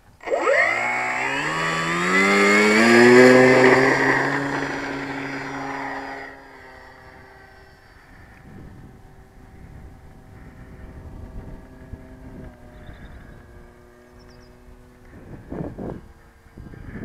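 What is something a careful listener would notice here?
A model plane's motor whines loudly, rising in pitch, then drones more quietly as the plane flies away.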